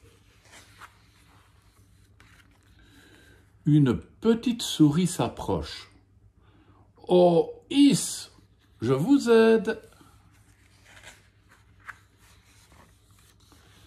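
Paper pages rustle as a book's page is turned.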